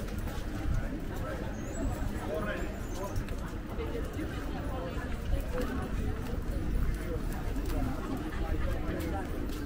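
Small wheels rattle along a pavement.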